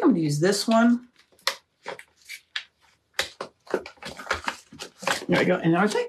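Plastic film crinkles and rustles in a woman's hands.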